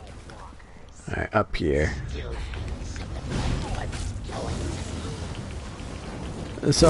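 Fiery magic blasts crackle and roar during a fight.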